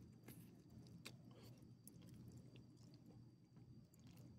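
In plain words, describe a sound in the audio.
A dog laps and chews from a bowl.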